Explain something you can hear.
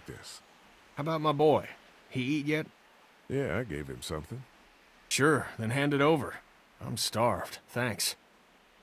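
A man talks with animation.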